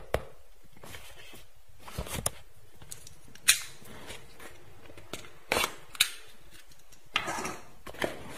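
A cardboard box taps and scrapes as hands handle it.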